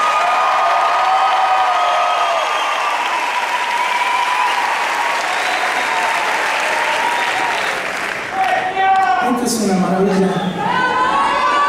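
A man sings into a microphone, heard from far back in a large echoing hall.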